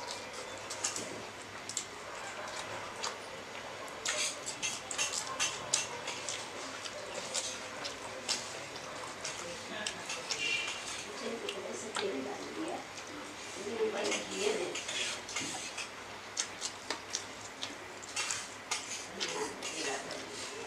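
A man chews and smacks his lips close up.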